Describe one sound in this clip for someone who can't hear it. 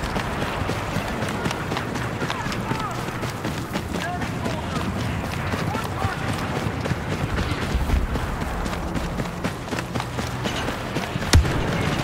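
Footsteps crunch quickly over sand.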